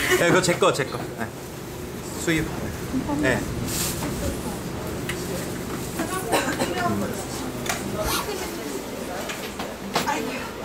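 Diners chatter quietly in the background.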